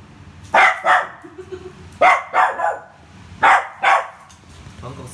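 A small dog barks sharply in pairs.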